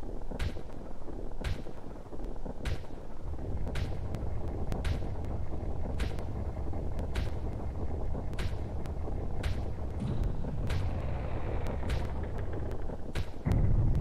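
Fireworks pop and crackle repeatedly.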